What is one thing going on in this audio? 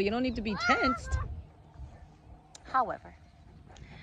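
A woman talks with animation close to the microphone, outdoors.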